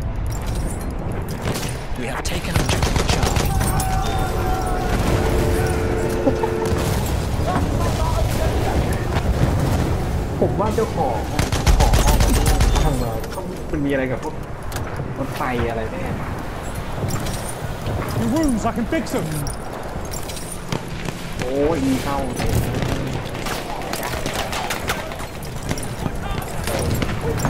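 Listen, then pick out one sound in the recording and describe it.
Rifle shots crack sharply again and again.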